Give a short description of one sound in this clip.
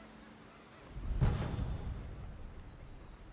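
A soft whoosh and chime sound.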